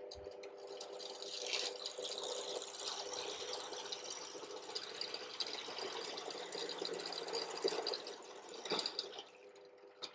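A drill bit bores into wood with a rasping whir.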